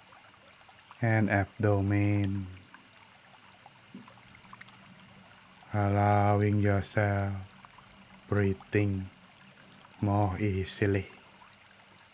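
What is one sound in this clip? An elderly man chants slowly in a deep voice through a microphone.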